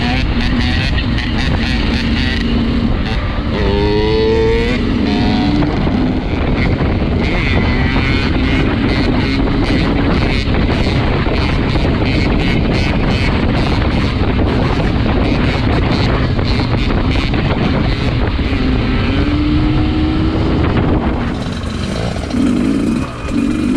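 A motorcycle engine roars close by, revving up and down.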